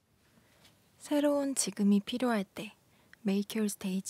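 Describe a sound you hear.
A young woman speaks calmly into a microphone, close by.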